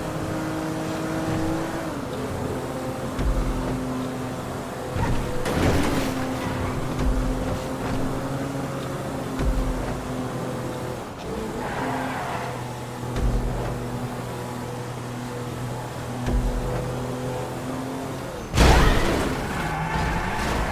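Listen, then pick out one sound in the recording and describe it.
A car engine hums as the car drives along a road.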